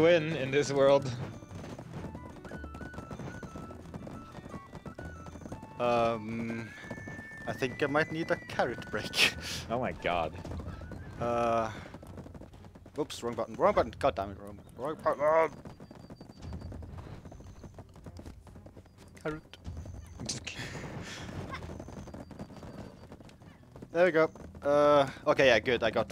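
Horses' hooves thud as they gallop along a dirt track.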